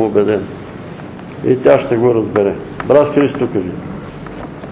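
An elderly man speaks calmly in a room with a slight echo.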